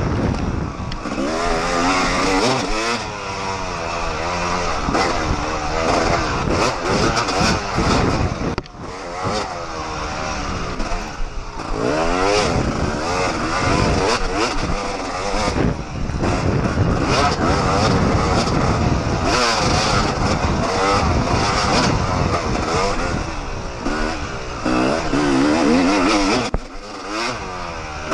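A dirt bike engine revs up and down loudly, close by.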